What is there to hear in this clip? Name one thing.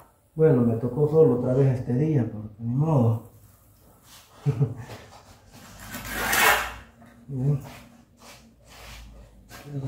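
A steel trowel scrapes across a hard surface.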